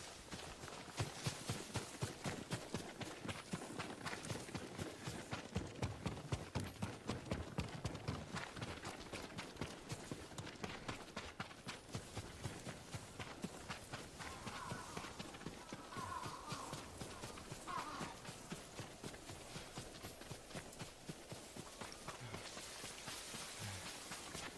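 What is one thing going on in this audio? Quick footsteps run steadily over soft ground.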